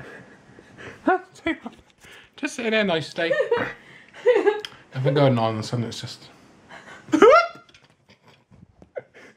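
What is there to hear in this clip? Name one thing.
A man laughs and talks with amusement close by.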